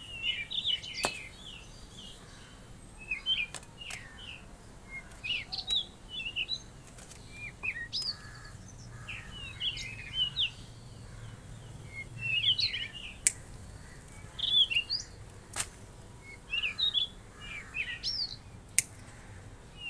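Pruning shears snip sharply through small branches.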